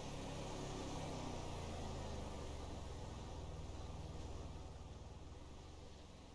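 A car engine rumbles steadily and slowly fades.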